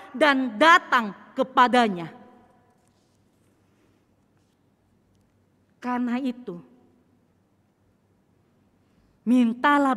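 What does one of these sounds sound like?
A woman speaks through a microphone in an echoing room, in short phrases with pauses.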